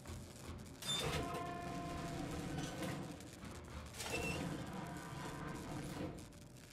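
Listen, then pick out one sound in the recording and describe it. Heavy metal elevator doors rumble as they slide open.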